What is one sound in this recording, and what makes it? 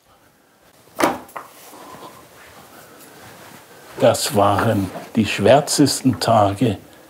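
Paper pages rustle as they are handled.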